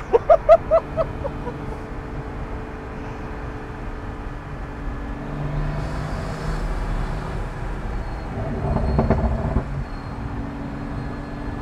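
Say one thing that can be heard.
A sports car engine rumbles as it drives along the road.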